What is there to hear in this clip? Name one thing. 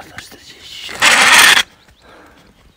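Something rustles loudly against the microphone.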